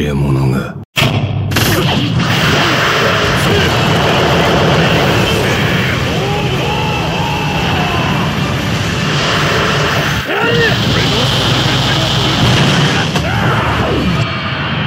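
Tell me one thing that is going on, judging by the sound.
Energy blasts crackle and roar in quick bursts.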